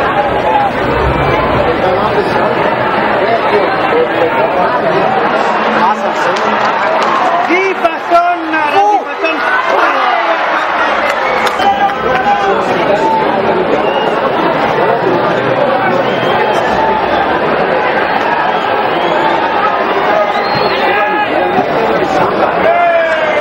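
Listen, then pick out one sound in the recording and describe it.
A large crowd cheers and chatters loudly in an open stadium.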